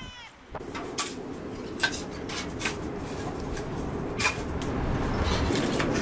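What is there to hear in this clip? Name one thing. Pieces of firewood knock and clatter as they are stacked.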